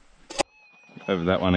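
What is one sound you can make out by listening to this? A metal detector beeps and warbles.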